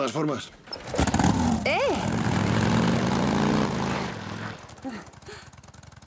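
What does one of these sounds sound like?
A motorcycle engine starts and revs, then idles.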